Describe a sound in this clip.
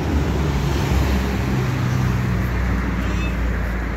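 A knife slices through a tomato.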